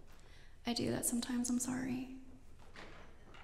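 A woman speaks into a microphone in a reverberant hall.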